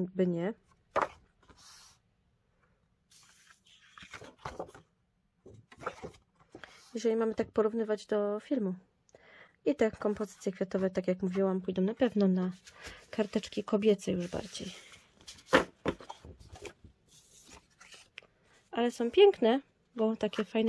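Sheets of paper rustle and crinkle as they are handled.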